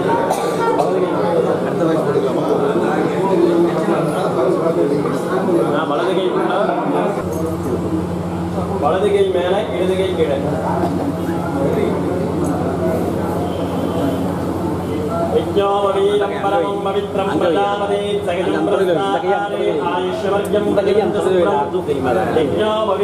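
A crowd of men chants together loudly in a reverberant space.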